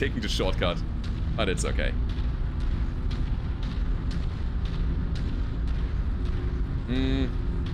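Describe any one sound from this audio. A walking mech's engine rumbles low and steady.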